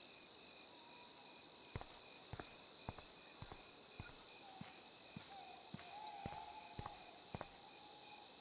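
Footsteps tread steadily on pavement.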